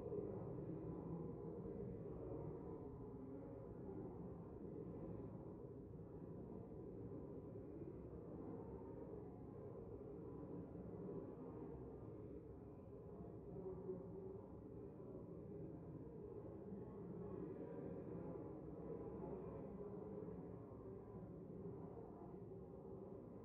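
Many people murmur and chat quietly in a large echoing hall.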